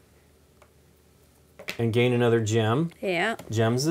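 Game cards slide softly on a table.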